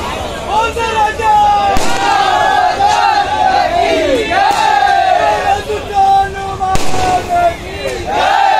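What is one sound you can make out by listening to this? A crowd of men and women talk and call out over one another.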